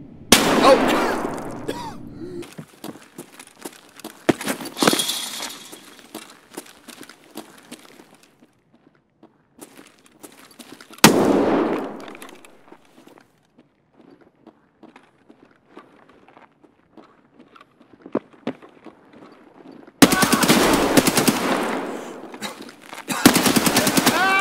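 A rifle fires loud shots that echo and ring out.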